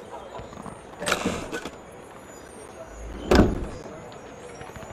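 A heavy wooden chest lid thuds open.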